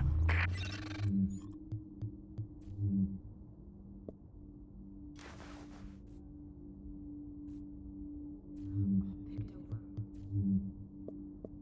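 Soft menu clicks and beeps sound now and then.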